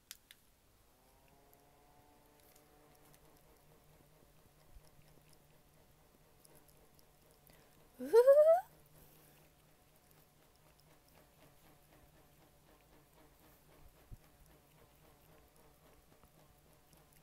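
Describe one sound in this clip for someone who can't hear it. A small handheld fan hums softly.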